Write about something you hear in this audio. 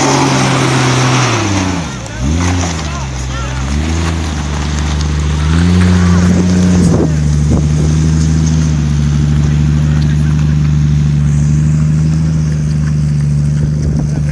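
Tyres crunch and grind on rock and gravel.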